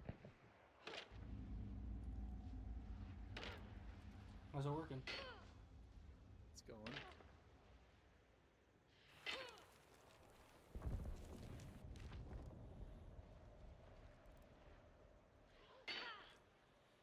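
A gun fires loudly a few times.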